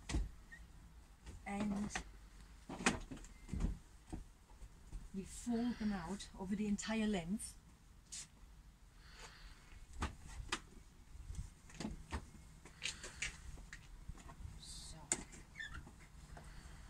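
Seat parts clunk and thump as a vehicle seat is folded.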